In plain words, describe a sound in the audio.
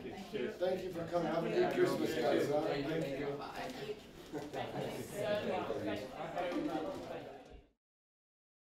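Several men talk together close by.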